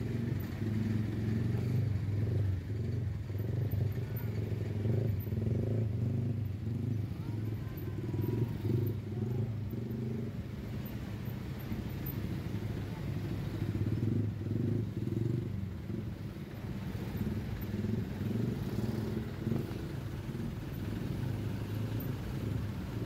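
Diesel trucks and a coach bus idle in stalled traffic.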